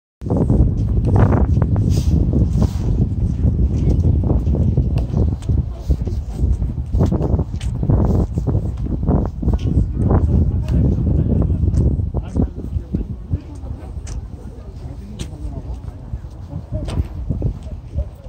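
Wind buffets the microphone outdoors with a heavy, gusty rumble that eases off later.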